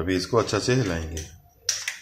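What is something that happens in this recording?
An egg cracks against a bowl.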